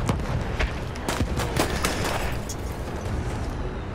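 A pistol fires sharp shots close by.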